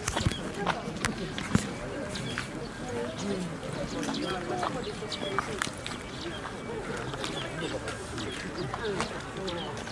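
Footsteps shuffle along a paved path.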